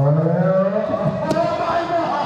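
A body slams hard onto a wrestling mat with a loud thud.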